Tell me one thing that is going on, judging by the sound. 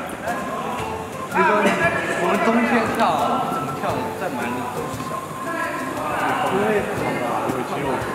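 Several young men chat in the background.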